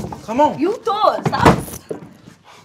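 A woman speaks loudly and with animation.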